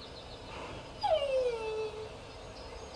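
A dog whines briefly with a falling pitch.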